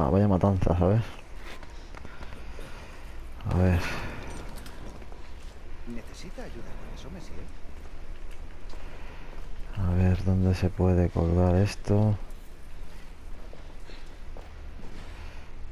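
Footsteps tread on wet stone.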